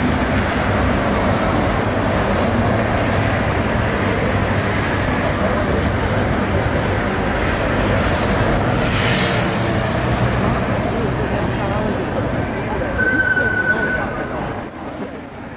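Cars drive past on a busy city street.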